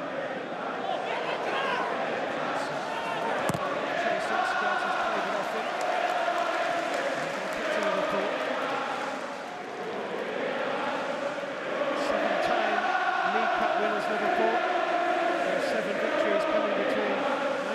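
A large stadium crowd sings and chants loudly, echoing in the open air.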